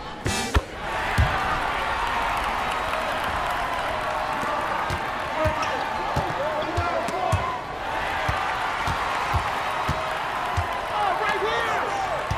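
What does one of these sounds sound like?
A crowd cheers and murmurs loudly.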